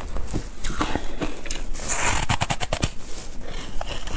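A young woman bites into a crunchy frozen treat with a sharp crack.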